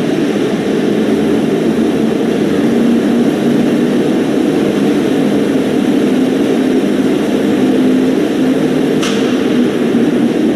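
An ice resurfacing machine's engine hums steadily as it drives across the ice.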